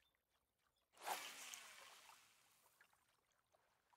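A fishing line whooshes out in a cast.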